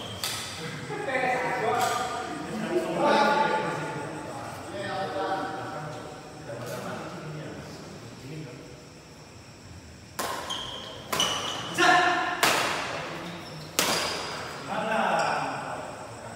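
Men call out and talk loudly across the court.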